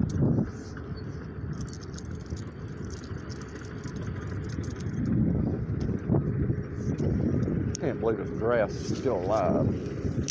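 Wind buffets the microphone with a low, steady rumble.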